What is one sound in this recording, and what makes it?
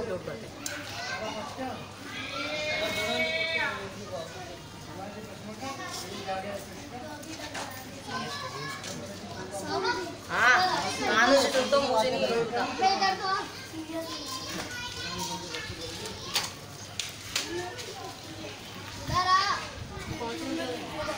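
Men shout and call out nearby outdoors.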